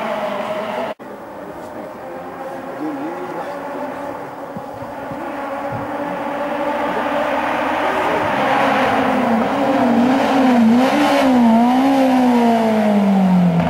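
A rally car engine revs hard, rising and falling as the car approaches and passes close by.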